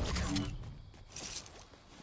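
Quick footsteps patter on hard ground.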